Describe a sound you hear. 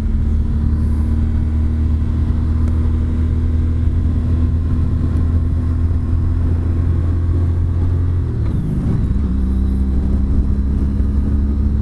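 A motorcycle engine hums steadily at cruising speed, dipping briefly as the rider shifts gear.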